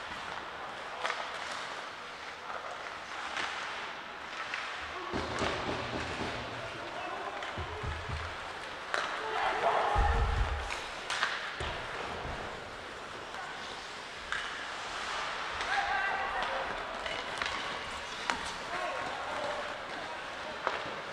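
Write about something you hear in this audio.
Hockey sticks clack against a puck in a large echoing arena.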